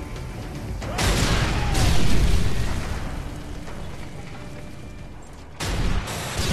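Gunfire rattles and explosions boom.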